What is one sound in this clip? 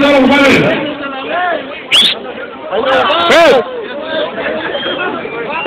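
Young men shout and sing loudly close by.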